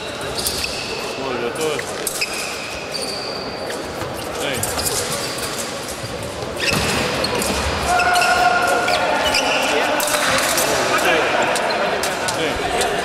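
Fencing shoes squeak and thud on a piste.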